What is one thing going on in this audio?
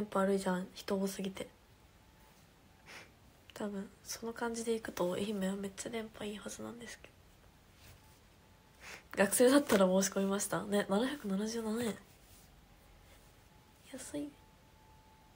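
A young woman talks casually and close to a microphone, with pauses.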